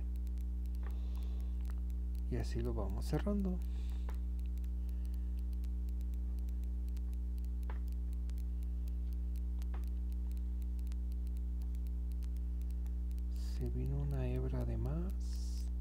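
A crochet hook softly pulls yarn through loops.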